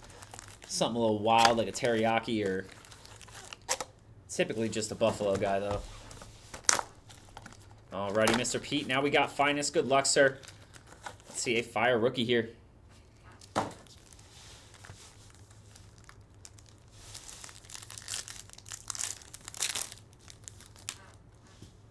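Cardboard and foil wrappers crinkle and tear as packs are opened.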